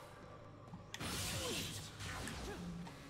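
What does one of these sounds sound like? A magical whoosh swells and fades.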